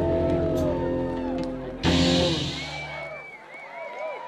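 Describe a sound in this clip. A live band plays rock music through loudspeakers outdoors.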